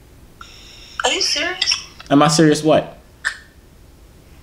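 A young woman talks through an online call.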